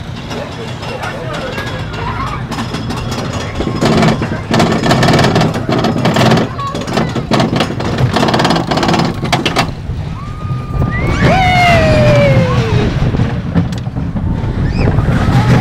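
Children scream and squeal with excitement.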